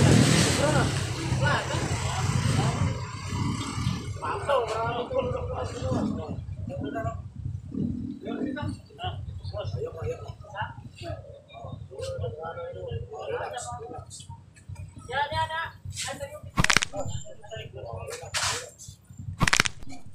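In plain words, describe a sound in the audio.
A man talks nearby in a casual voice.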